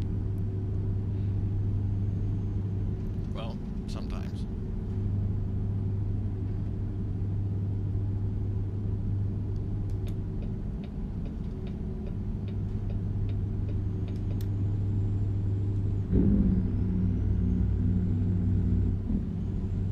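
A truck's diesel engine drones steadily from inside the cab.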